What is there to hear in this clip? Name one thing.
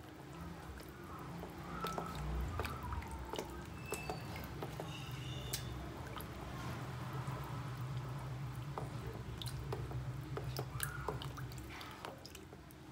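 A whisk clinks against a metal pot as batter is stirred.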